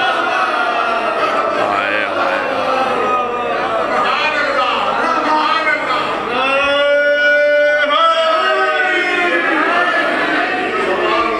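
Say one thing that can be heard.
A man recites in a loud, melodic chanting voice through a microphone and loudspeakers.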